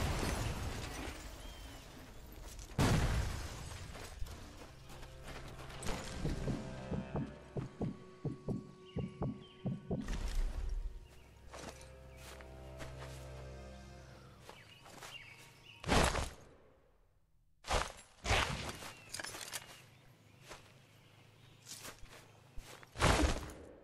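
Footsteps crunch softly through undergrowth.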